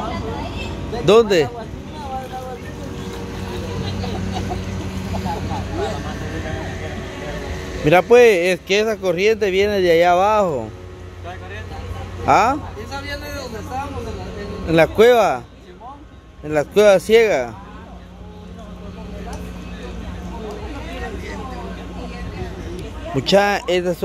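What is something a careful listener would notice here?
Young men talk and laugh nearby outdoors.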